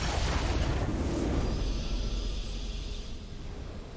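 A triumphant fanfare plays.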